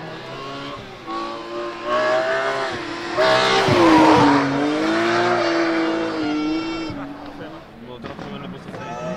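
A second rally car engine screams through the gears and roars past.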